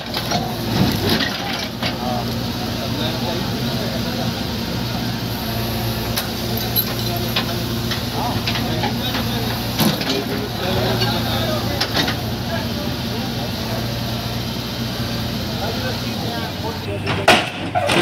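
A digger bucket scrapes and knocks against concrete.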